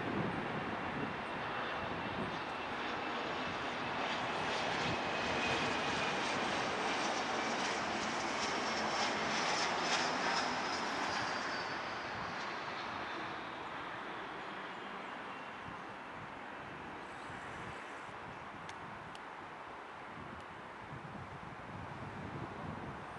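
A jet airliner's engines roar and whine loudly as it flies low overhead, then slowly fade.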